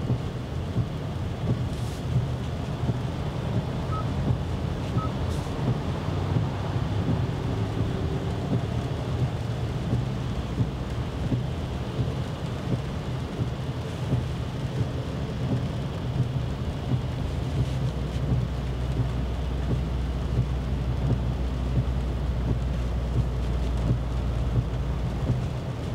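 Windscreen wipers sweep back and forth with a soft swish.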